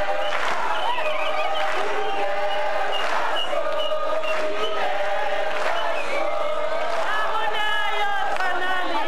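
A crowd of men and women sings together loudly.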